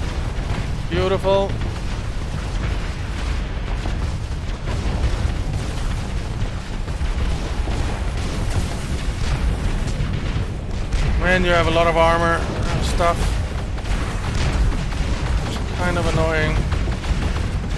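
Explosions rumble deeply and steadily.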